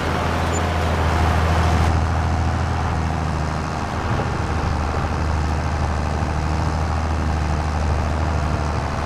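A tractor engine rumbles steadily at a low pitch.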